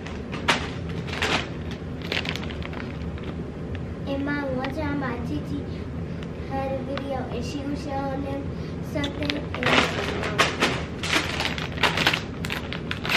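A plastic snack bag crinkles as it is handled.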